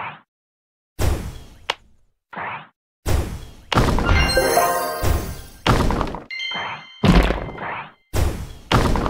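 Game bubbles pop and burst with chiming sparkles.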